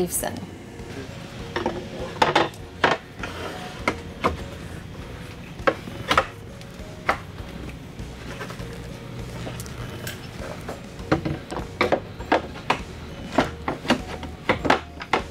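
A table leaf slides and clunks into place.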